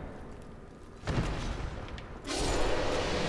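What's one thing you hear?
A heavy armoured body crashes to the ground.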